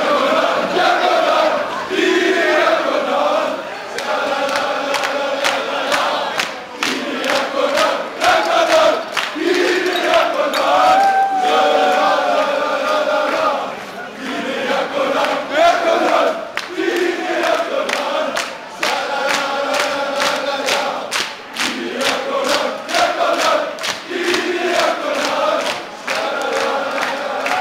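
A large crowd of men chants loudly in unison, echoing in a large hall.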